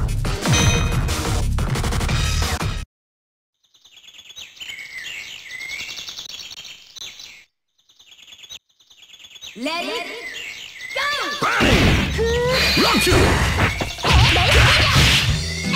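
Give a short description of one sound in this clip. Upbeat arcade game music plays.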